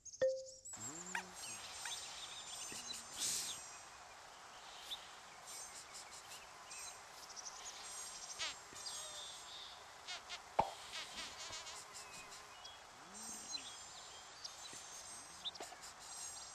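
Soft bright chimes tinkle on and off.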